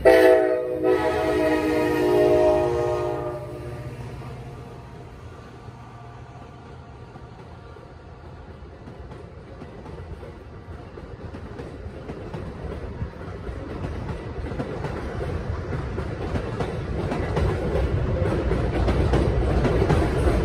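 A passenger train rumbles along the tracks, growing louder as it passes close by.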